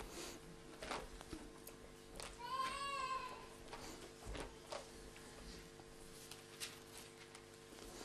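Paper rustles as a man turns pages.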